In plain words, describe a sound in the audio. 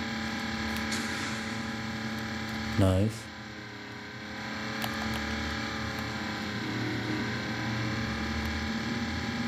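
A racing car engine drones steadily from a small phone speaker.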